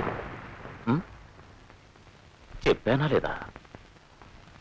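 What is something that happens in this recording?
A man speaks tensely in short bursts, close by.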